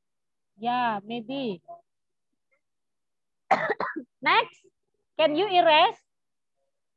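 A young girl speaks slowly and clearly through an online call, as if reading out.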